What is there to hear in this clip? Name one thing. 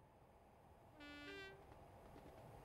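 A train horn sounds two tones.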